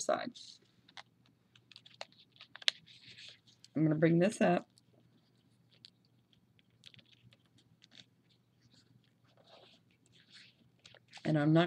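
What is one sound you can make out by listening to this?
Paper rustles and crinkles softly as it is folded and pressed.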